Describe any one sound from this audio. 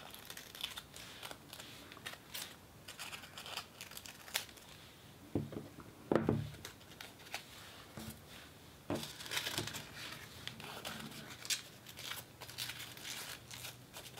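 Paper crinkles and rustles between fingers close up.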